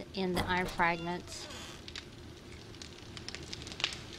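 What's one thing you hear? A fire crackles in a forge.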